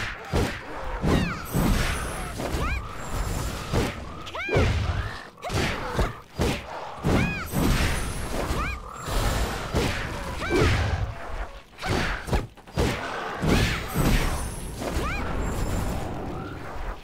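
Sword blows strike and whoosh in rapid bursts.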